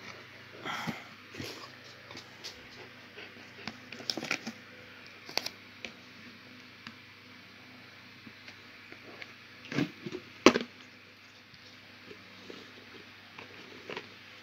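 A plastic tub rattles and knocks close by.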